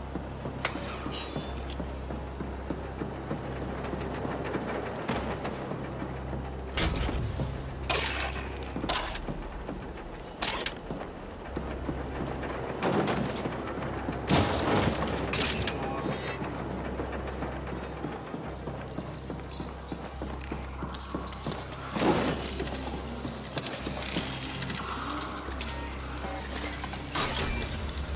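Heavy machinery hums low and steady.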